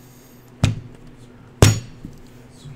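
Two sharp thumps strike a table.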